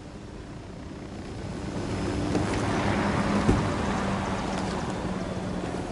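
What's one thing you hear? A helicopter's rotor whirs and its engine hums, growing louder as it comes down.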